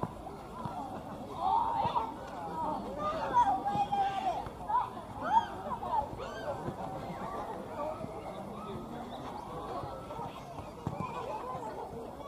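A crowd of men and women chatter and laugh outdoors at a distance.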